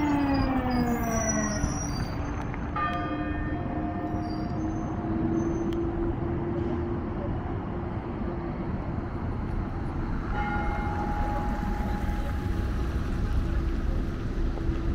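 Engines whine as vehicles drive by close.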